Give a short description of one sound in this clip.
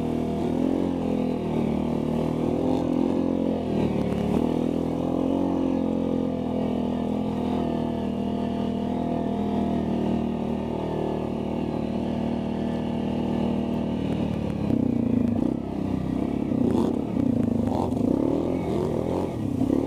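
A quad bike engine drones up close.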